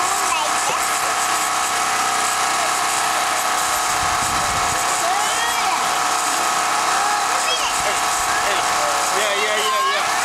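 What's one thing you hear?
Young children chatter nearby.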